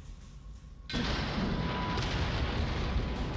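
Debris clatters and hisses afterwards.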